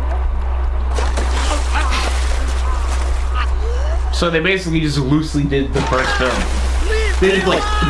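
Water splashes and sprays loudly.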